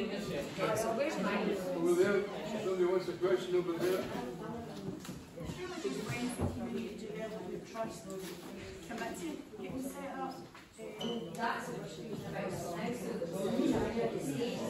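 A woman speaks with animation to a group in a large echoing hall.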